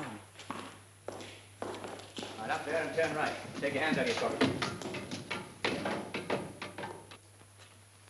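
Footsteps clatter on a hard floor and stairs.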